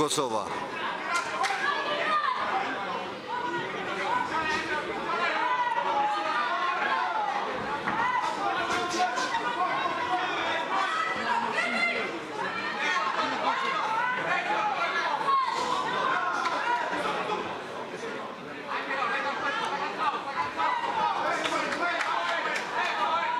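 A crowd shouts and cheers in an echoing hall.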